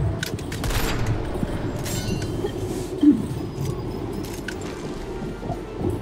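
A rifle is reloaded with a metallic clack.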